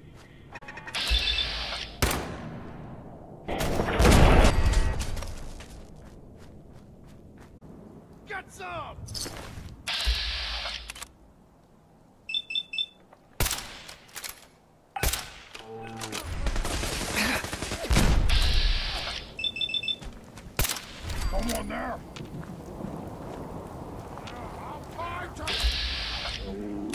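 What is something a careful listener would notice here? A rifle fires loud, booming shots, several times.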